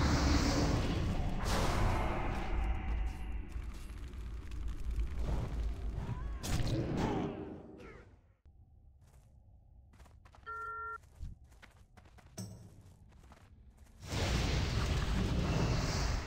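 Weapons strike and spells burst in a fight.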